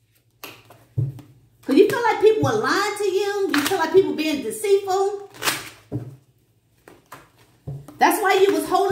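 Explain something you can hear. Playing cards slap softly onto a table.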